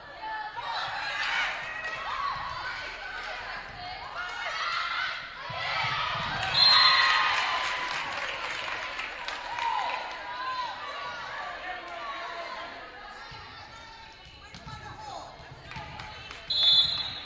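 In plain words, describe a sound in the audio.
Young women shout and call out to each other in an echoing gym.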